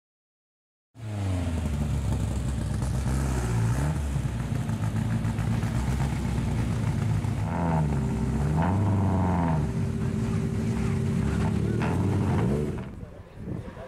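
A rally car engine revs hard as the car pulls away.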